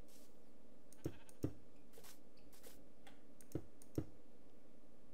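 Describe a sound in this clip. Stone blocks are placed with short dull thuds.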